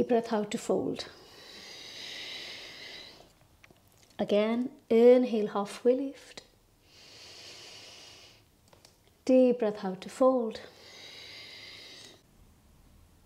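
A woman breathes out deeply and slowly.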